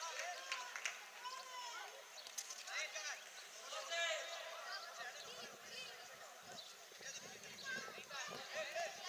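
Children shout and call out to each other across an outdoor playing field.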